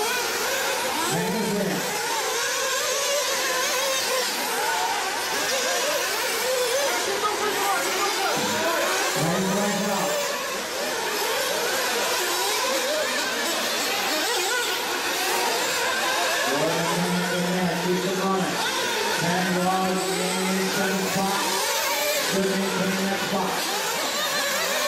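Model race car engines buzz and whine at high speed.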